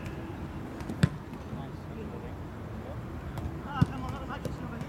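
A football is kicked outdoors.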